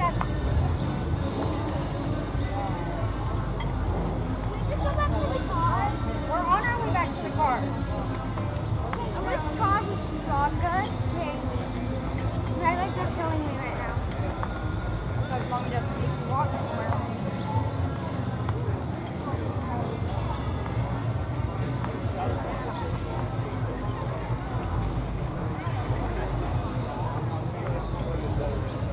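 A crowd of men and women chatters nearby, outdoors.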